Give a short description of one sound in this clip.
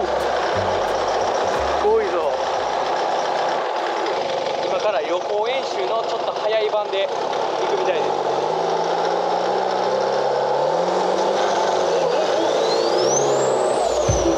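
A boat engine roars loudly and steadily.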